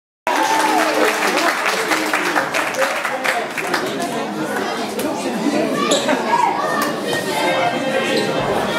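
A crowd of young people chatters and calls out in an echoing hall.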